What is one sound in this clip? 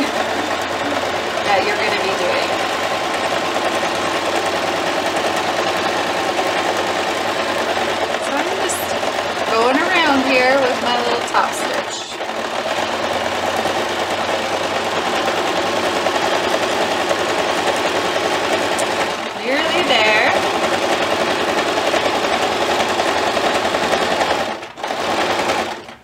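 A sewing machine hums and rattles steadily as it stitches.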